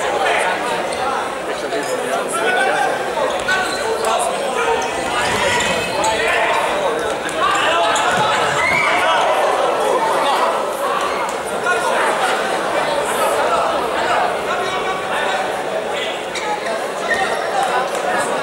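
A ball thuds off a player's foot.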